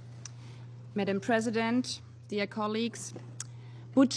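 A second woman speaks into a microphone.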